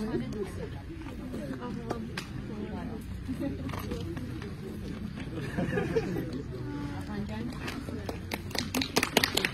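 A small crowd of men and women chatters outdoors.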